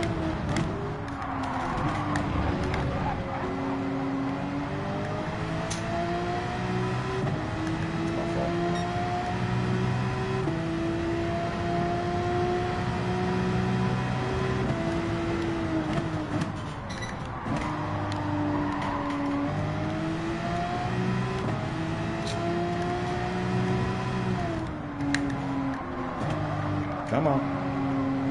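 Tyres squeal through the corners.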